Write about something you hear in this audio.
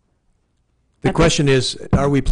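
A man speaks loudly and close through a microphone.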